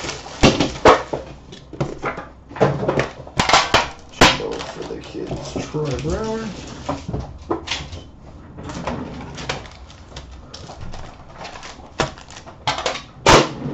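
A metal tin clicks and clatters as it is opened and set down.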